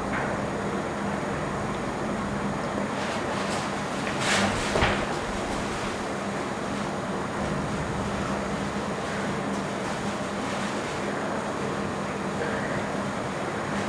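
Men handle a heavy metal shell on loose dirt with scraping and rustling.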